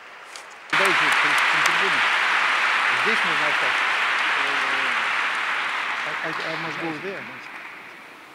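A middle-aged man talks and laughs through a microphone.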